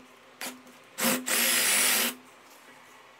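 A cordless drill whirs as it bores into wood.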